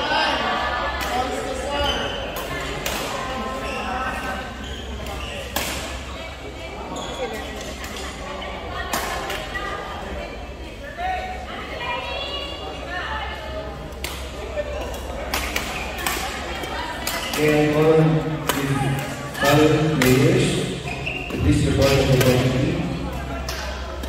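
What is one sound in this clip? Shuttlecocks are struck with sharp pops of rackets in a large echoing hall.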